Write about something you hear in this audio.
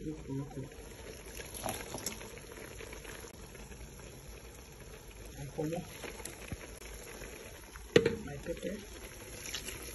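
Water bubbles at a boil in a pot.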